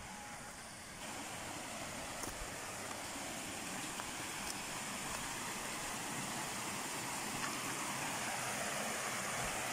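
Water rushes steadily over rocks close by.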